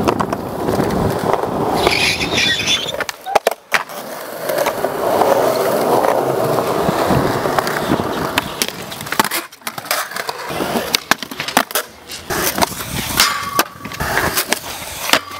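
Skateboard wheels roll loudly over concrete.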